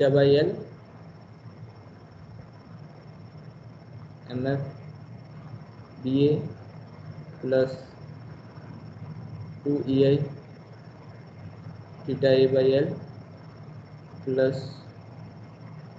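A man speaks calmly in short phrases with pauses, heard through an online call.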